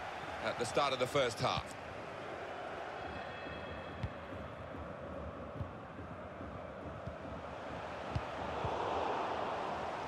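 A large crowd roars steadily in a stadium, swelling toward the end.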